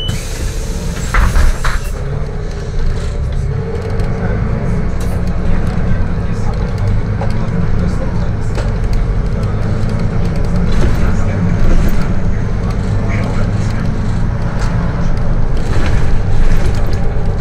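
A bus pulls away and rolls along a street, its engine growing louder.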